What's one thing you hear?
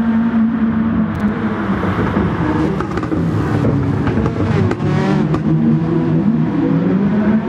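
A racing car engine roars at high revs and shifts gears.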